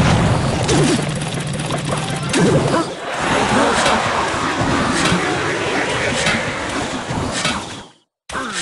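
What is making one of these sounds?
Game sound effects clash and ring out.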